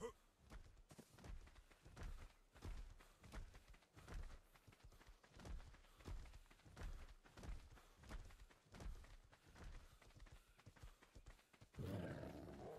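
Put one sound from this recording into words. Bare feet thud in quick, steady footsteps across soft ground.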